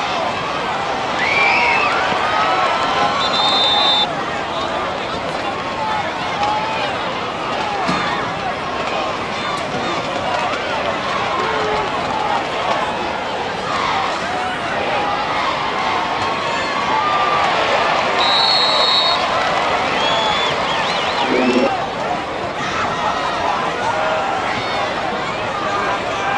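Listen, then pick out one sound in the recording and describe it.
A crowd cheers and chatters from stands outdoors.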